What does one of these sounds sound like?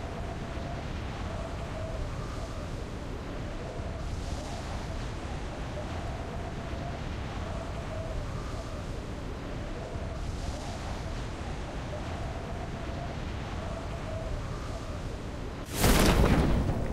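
Wind rushes steadily past a skydiver in free fall.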